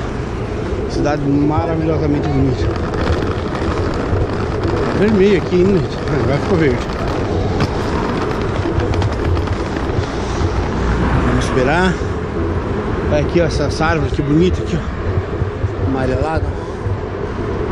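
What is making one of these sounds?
Traffic rumbles steadily along a nearby road outdoors.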